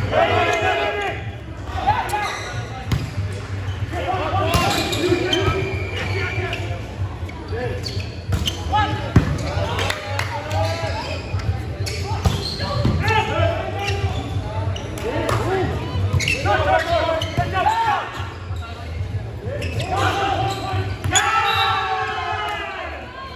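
Young men shout and call to each other in a large echoing gym.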